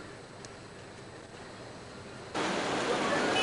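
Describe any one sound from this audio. A crowd murmurs close by.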